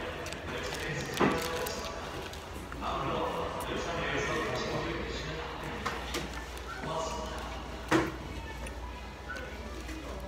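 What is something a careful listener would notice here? A man chews food noisily close up.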